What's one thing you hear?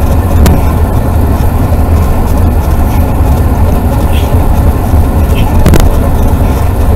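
Wind roars loudly and steadily against a helmet at speed.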